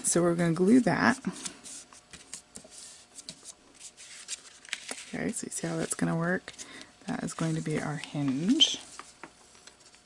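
Paper rustles and slides under hands.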